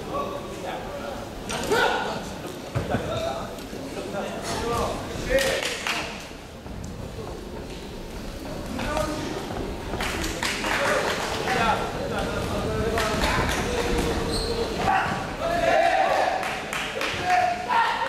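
Spectators shout and cheer in an echoing hall.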